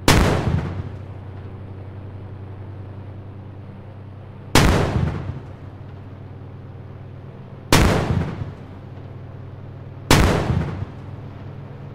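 A rocket launcher fires with a loud, echoing boom.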